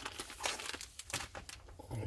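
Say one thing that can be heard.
A packet rustles.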